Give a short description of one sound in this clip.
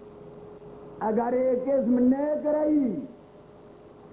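An elderly man sings in a long, wavering voice through a microphone.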